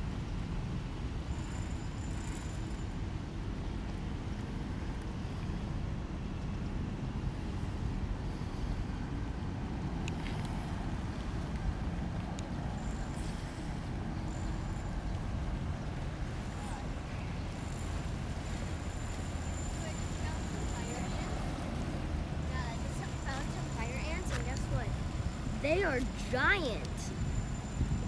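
Wind blows steadily and rumbles outdoors.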